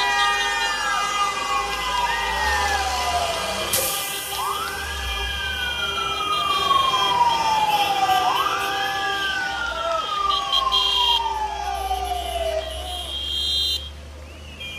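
A truck engine rumbles as the truck drives slowly past close by.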